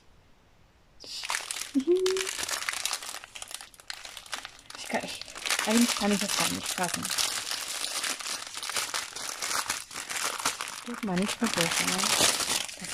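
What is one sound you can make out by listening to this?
A plastic bag crinkles and rustles as it is handled.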